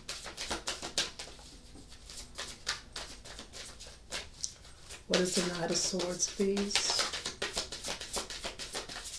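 Playing cards riffle and flap as they are shuffled by hand.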